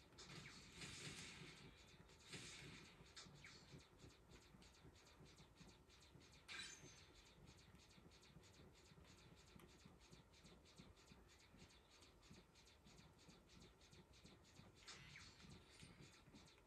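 Explosions from a video game burst now and then through a television speaker.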